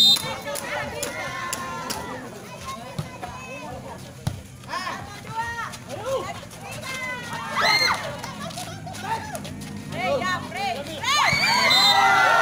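A crowd of young men cheers and shouts outdoors.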